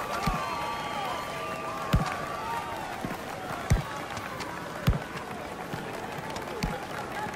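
A ball is kicked with dull thumps.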